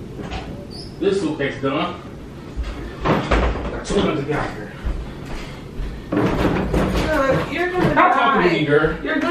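A man shouts loudly and angrily.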